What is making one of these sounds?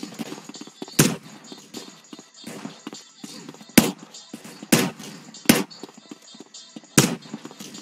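Gunshots ring out one at a time, with pauses between them.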